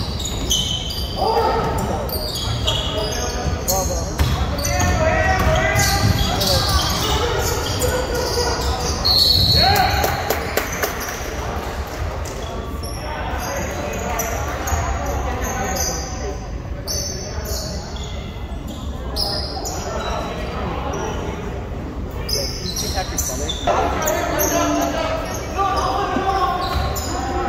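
A crowd of people chatter in a large echoing gym.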